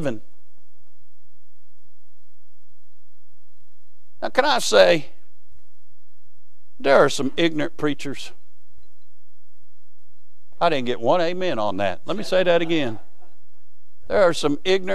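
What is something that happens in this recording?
A man speaks through a microphone in a hall, with pauses between phrases.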